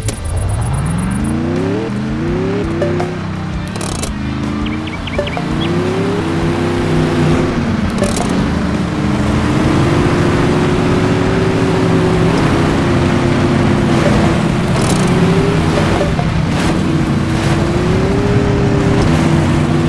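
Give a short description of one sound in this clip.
A truck engine roars and revs up and down.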